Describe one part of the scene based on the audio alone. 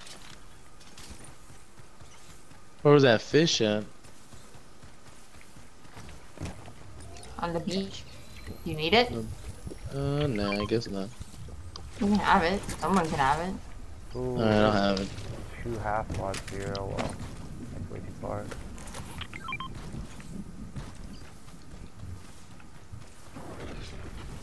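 Footsteps run across grass in a video game.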